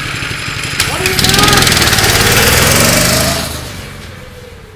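A go-kart engine revs loudly and drives off.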